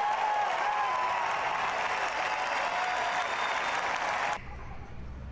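A large crowd cheers and screams loudly in a big arena.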